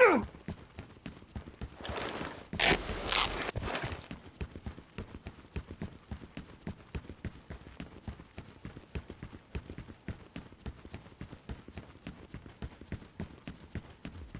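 Footsteps run quickly over hard ground and grass.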